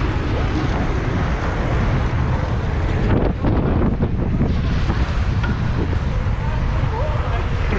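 Bicycle tyres hum on asphalt.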